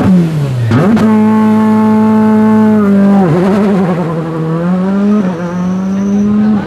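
A rally car engine roars loudly as the car speeds away.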